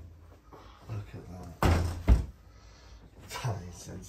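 A heavy slab of meat thuds onto a metal counter.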